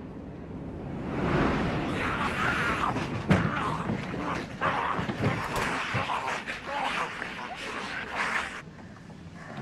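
A crowd of people shrieks and snarls in a frenzy.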